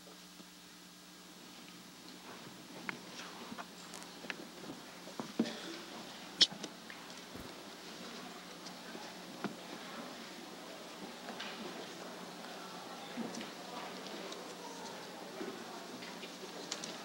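Papers rustle as a man handles them.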